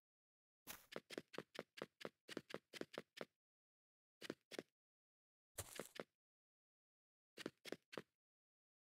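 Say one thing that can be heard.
Quick footsteps tap on wooden planks in short runs.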